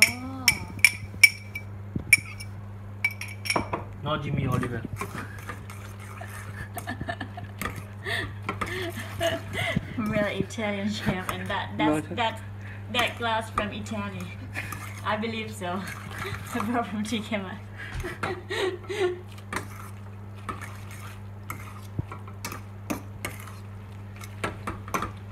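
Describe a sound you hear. A metal utensil clinks and scrapes against a pot.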